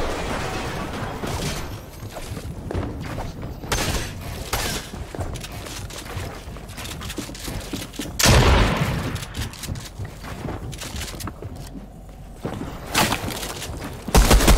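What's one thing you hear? Game building pieces snap into place with quick clacks.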